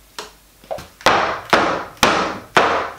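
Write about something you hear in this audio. A wooden mould thumps repeatedly on a table.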